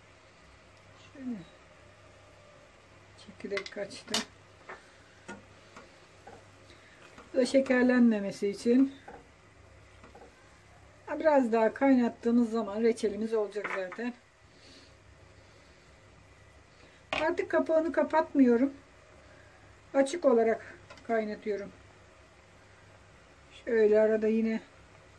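Water bubbles at a steady boil in a pot.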